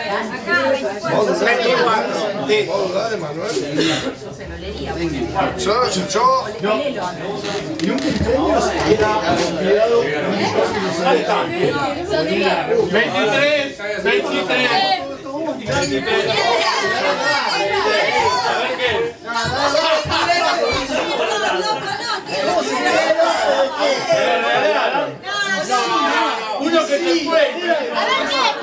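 A crowd of young men and women chatter and talk over one another indoors.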